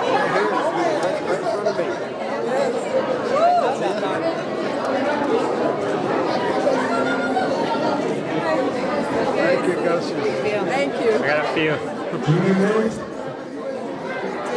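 A crowd of adults chats.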